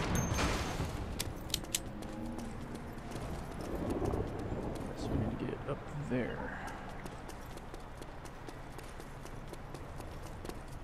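Footsteps run quickly on pavement.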